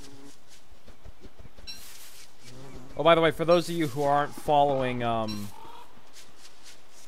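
Footsteps patter softly over dry grass.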